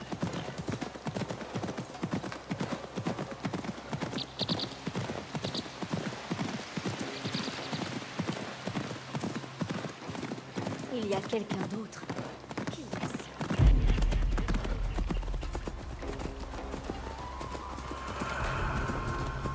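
Horse hooves thud steadily on a dirt path.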